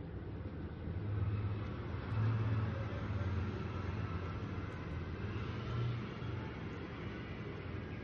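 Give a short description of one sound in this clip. A middle-aged woman speaks quietly close by.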